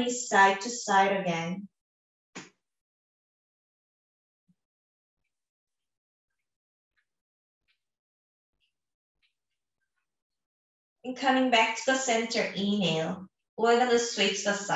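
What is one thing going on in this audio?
A young woman speaks calmly and softly into a close microphone.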